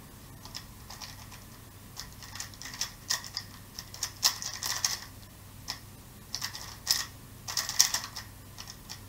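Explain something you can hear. A puzzle cube clicks and clatters as it is turned quickly in the hands.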